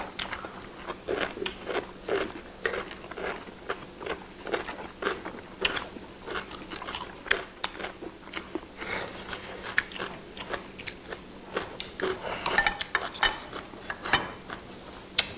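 Chopsticks click against bowls and plates.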